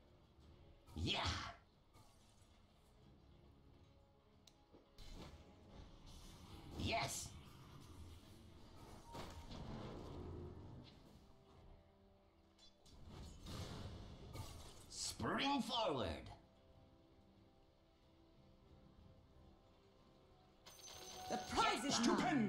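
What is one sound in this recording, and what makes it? Magic spells whoosh and crackle in bursts in a video game battle.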